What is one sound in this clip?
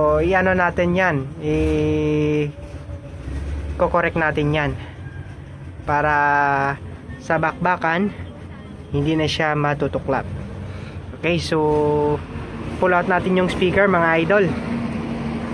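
A man talks calmly close by, explaining.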